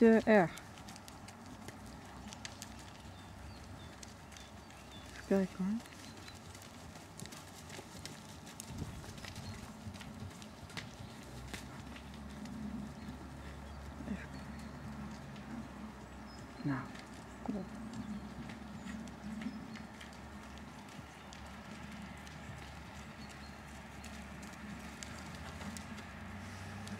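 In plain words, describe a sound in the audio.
A horse's hooves thud softly on sand at a trot, some way off.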